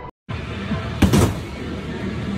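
A punching bag is struck with a loud thump.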